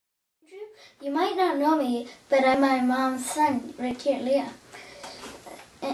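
A young boy speaks.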